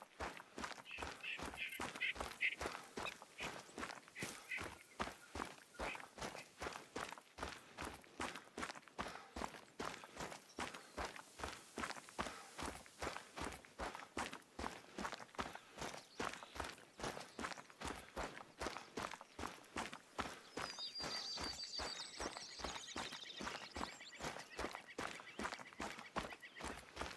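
Footsteps swish steadily through dry grass.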